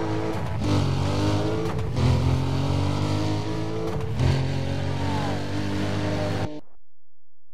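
A sports car engine roars loudly at high revs, then cuts off.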